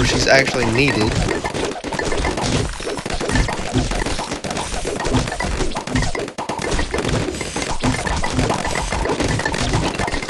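Cartoonish attack effects pop and whoosh rapidly and without pause.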